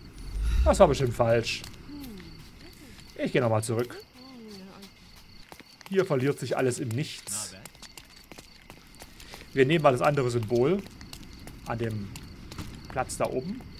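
A man's footsteps run quickly over cobblestones.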